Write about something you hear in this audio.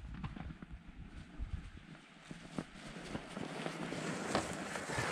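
Bicycle tyres crunch over packed snow, drawing closer.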